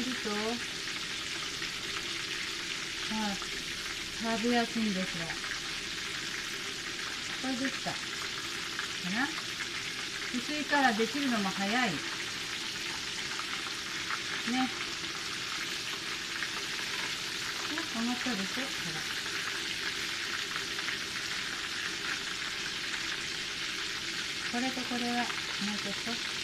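Breaded pork cutlets sizzle and bubble as they deep-fry in hot oil.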